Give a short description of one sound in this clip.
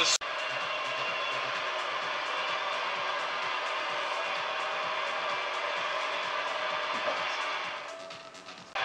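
Music plays through a television speaker.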